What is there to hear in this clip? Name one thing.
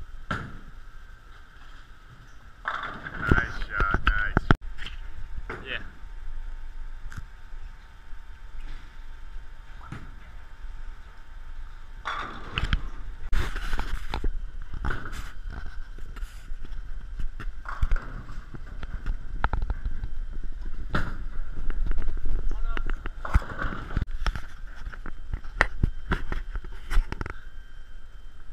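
Bowling balls roll down wooden lanes with a low rumble.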